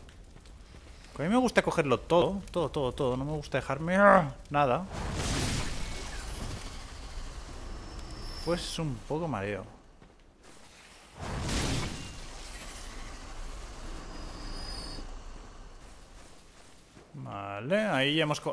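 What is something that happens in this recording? A heavy blade swings and slashes through the air.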